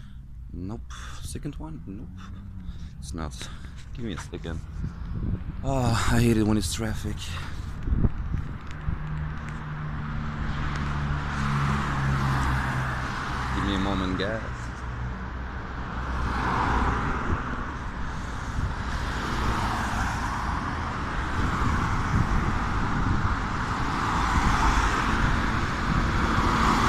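Outdoors in wind, gusts rumble against the microphone.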